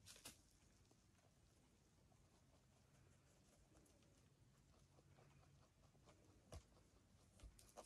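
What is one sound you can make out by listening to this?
Rabbits nibble and chew on hay up close.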